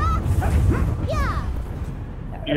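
A magical blast rumbles and whooshes.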